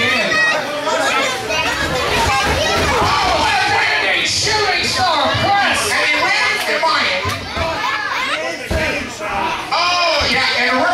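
A crowd of men and women shouts and cheers in a large echoing hall.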